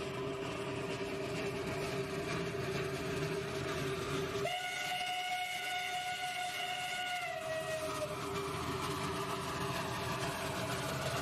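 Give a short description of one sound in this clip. A steam locomotive chugs closer, puffing steadily.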